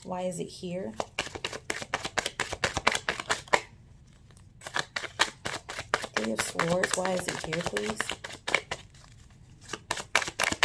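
Playing cards are shuffled with quick, riffling flicks close by.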